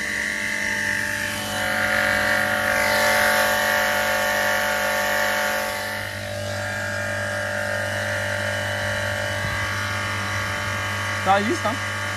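A pressure washer pump hums and whines steadily close by.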